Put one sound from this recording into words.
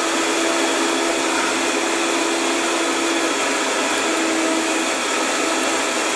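A blender whirs loudly and steadily close by.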